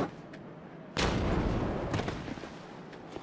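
A heavy thud and rustle of armour sounds as a figure rolls.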